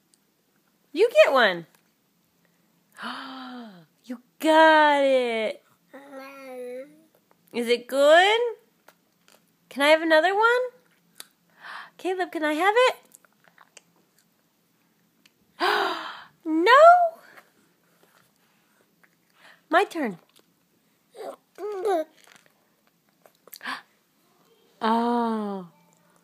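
A toddler babbles and squeals up close, on and off.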